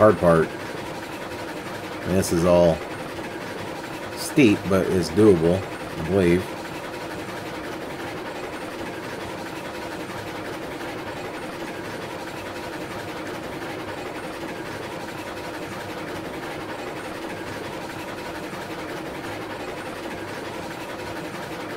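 A steam locomotive rumbles steadily along the track.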